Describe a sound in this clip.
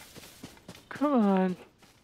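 Footsteps rustle through wet grass.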